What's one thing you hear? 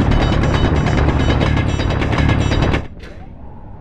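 A drill grinds loudly into rock with a harsh, roaring noise.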